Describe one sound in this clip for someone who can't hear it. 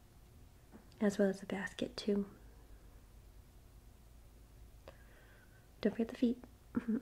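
An older woman speaks calmly, close by.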